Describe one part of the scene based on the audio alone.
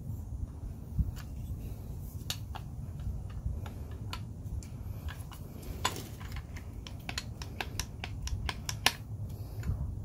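A spring-loaded plastic handle clicks and snaps as it is worked by hand.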